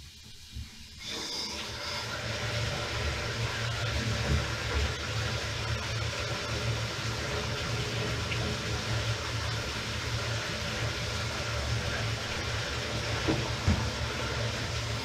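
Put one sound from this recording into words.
Water gushes steadily from a hose onto a floor.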